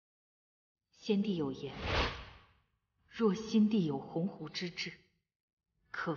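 A young woman speaks earnestly and calmly, close by.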